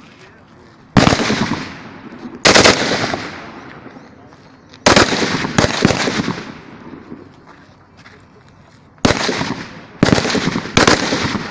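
A rifle fires single loud shots outdoors, each echoing away.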